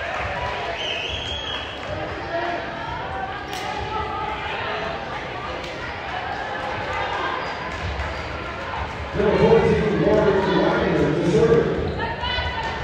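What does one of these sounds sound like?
A crowd of spectators chatters throughout in a large echoing gym.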